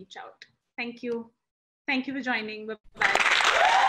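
A young woman speaks cheerfully over an online call.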